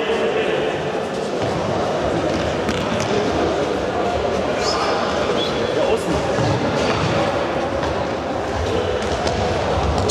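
Boys shout to each other, echoing in a large hall.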